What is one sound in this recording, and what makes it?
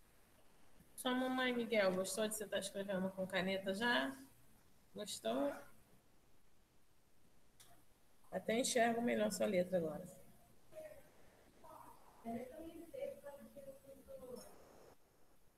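A woman speaks calmly through a computer microphone, as on an online call.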